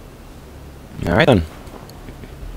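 A man speaks briefly in a low voice.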